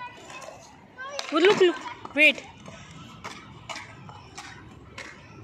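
Skateboard wheels roll over paving stones.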